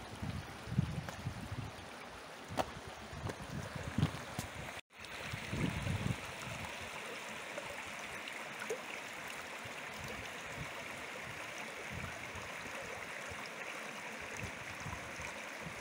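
A shallow stream trickles and babbles over stones.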